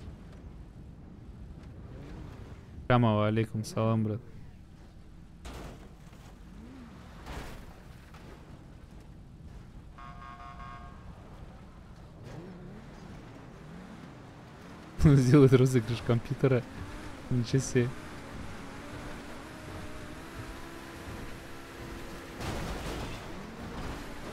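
A sports car engine hums as the car drives over snow.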